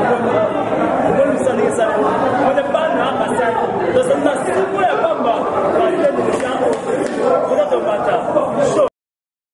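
A crowd chatters and sings in the background.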